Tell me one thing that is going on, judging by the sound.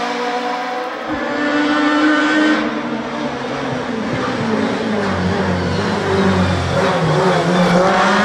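A second racing car engine approaches with a loud, rising roar.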